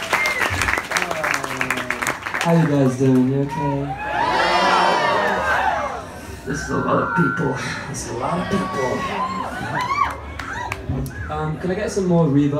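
A young man sings into a microphone over loudspeakers.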